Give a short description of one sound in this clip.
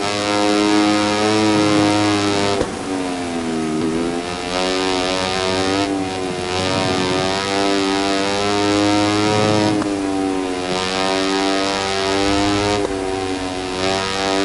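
A racing motorcycle engine screams at high revs, dropping in pitch when braking and rising again through the gears.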